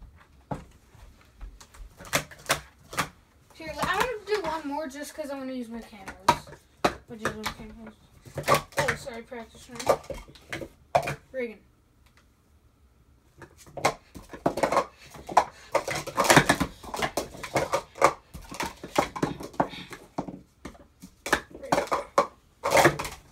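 Plastic cups clack and rattle as they are quickly stacked and unstacked.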